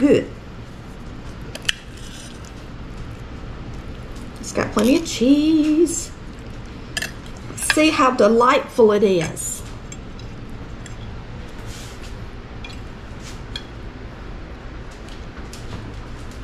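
A knife scrapes and taps on a ceramic plate.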